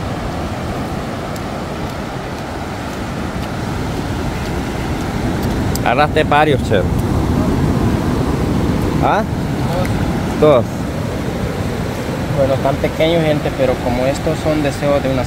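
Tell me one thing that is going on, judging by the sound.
Waves break and wash steadily onto a beach.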